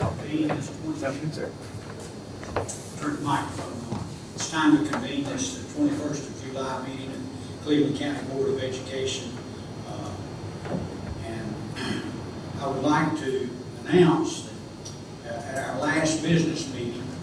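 An older man speaks calmly into a microphone in a room with a slight echo.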